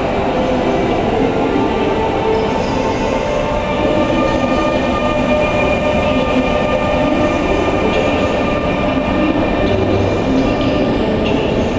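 A locomotive hauls a train slowly past with a low rumble.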